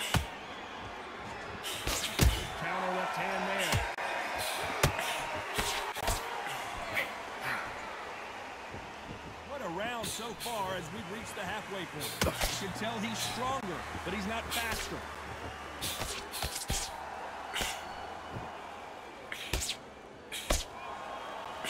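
Gloved punches land with heavy thuds.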